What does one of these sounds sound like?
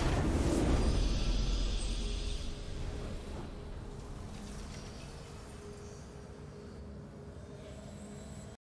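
A triumphant victory fanfare plays and slowly fades.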